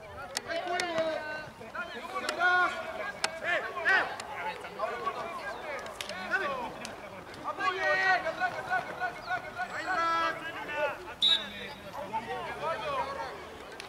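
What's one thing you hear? Young spectators shout and cheer close by, outdoors.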